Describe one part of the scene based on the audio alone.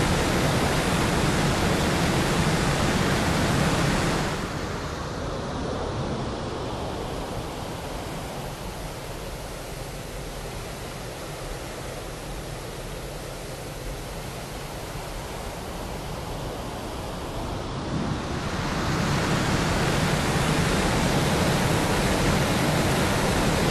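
A jet engine roars steadily, growing quieter for a while and then loud again.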